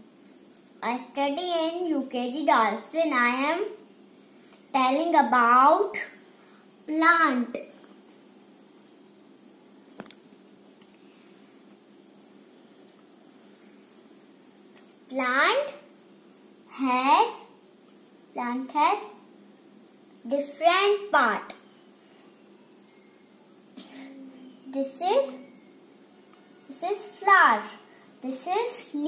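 A young girl speaks close by in short, lively bursts with pauses.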